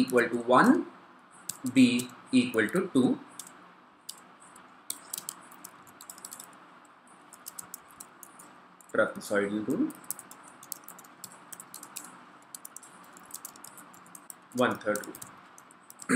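Computer keys click as someone types.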